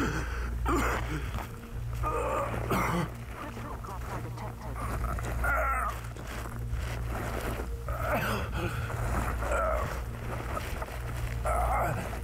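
A man sobs and breathes heavily close by.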